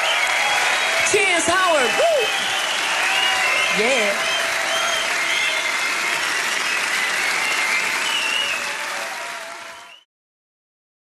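Fans in a crowd whistle loudly.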